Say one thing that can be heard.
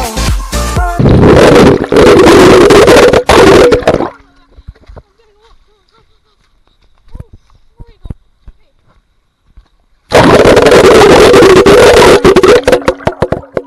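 Rushing water splashes loudly and close by.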